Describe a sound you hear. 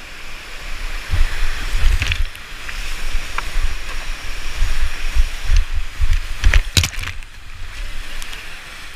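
Whitewater rapids roar and rush loudly.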